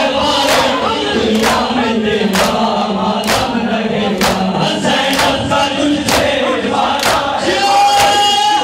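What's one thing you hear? Many men beat their chests in a steady rhythm.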